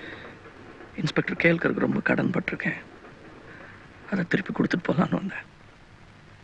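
A man speaks calmly and firmly.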